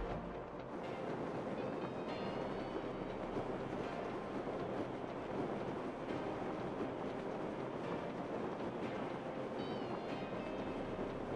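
Wind rushes loudly and steadily past during a fall through the air.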